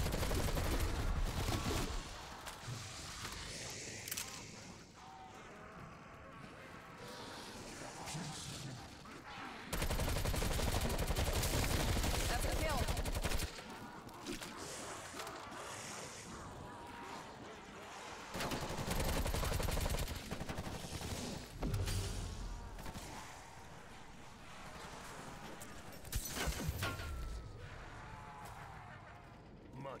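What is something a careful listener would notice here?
A woman talks into a microphone with animation.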